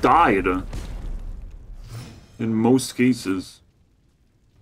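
Video game sound effects chime and whoosh as cards are played.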